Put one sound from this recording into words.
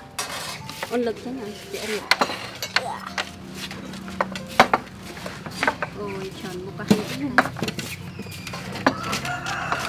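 Ceramic bowls and plates clink on a wooden table.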